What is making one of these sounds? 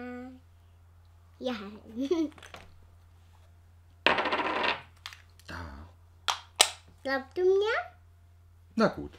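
A young girl speaks excitedly and laughs close by.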